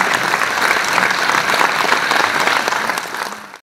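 A keyboard plays along with the band.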